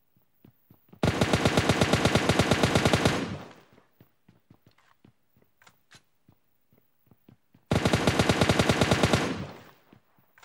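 An automatic rifle fires in loud, rapid bursts.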